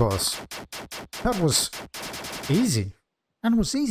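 Rapid electronic gunshots fire in quick bursts.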